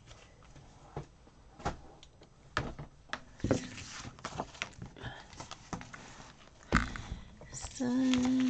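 Stiff paper pages rustle and click close by.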